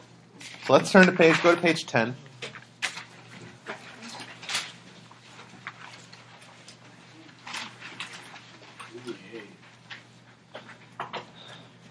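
Sheets of paper rustle and flap as they are handled.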